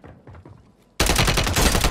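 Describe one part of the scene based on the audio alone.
A rifle fires loudly.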